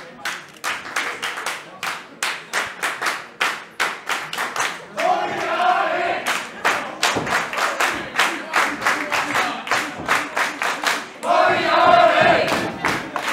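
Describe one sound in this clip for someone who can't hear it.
A crowd claps in a fast, steady rhythm.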